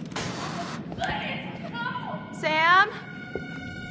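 A young woman gasps and speaks nervously close by.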